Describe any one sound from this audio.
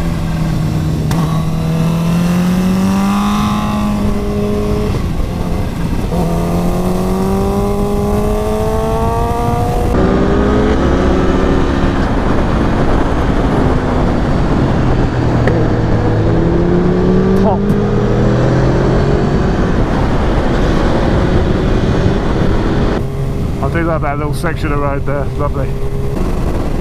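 A motorcycle engine roars and climbs in pitch through the gears.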